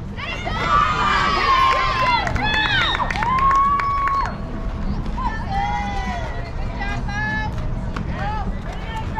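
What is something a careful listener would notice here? Young girls shout and cheer loudly across an open field.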